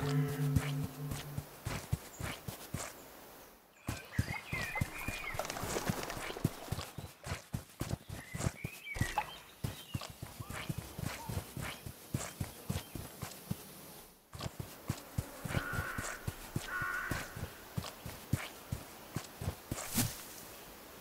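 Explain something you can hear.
Small footsteps patter quickly over the ground.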